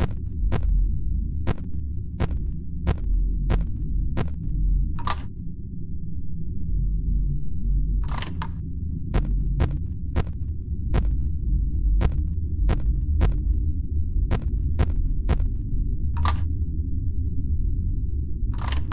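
A low electrical hum drones steadily throughout.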